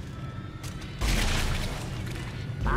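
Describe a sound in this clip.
A weapon fires with a sharp electric burst.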